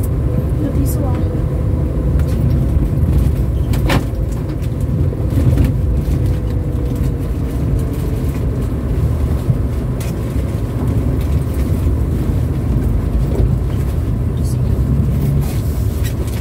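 Tyres roll over a rough road with a low rumble.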